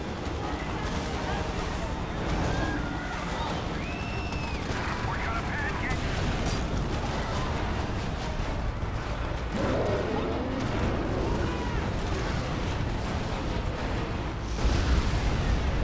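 Gunfire and explosions crash repeatedly.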